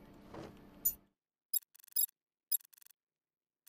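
Short electronic chimes click in quick succession.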